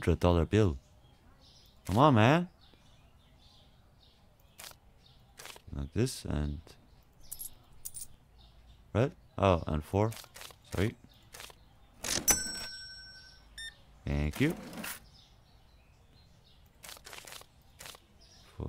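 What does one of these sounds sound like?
Short clicks sound as bills and coins are picked from a cash drawer.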